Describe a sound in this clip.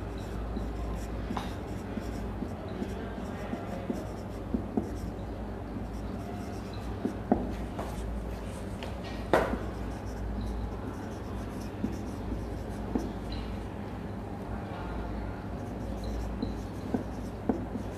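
A marker squeaks and taps against a whiteboard.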